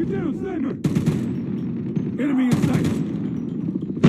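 A rifle fires sharp shots in short bursts.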